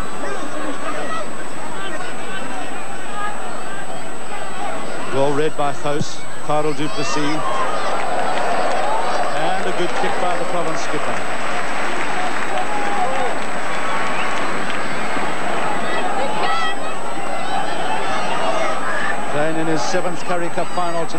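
A large stadium crowd roars and cheers, swelling and fading.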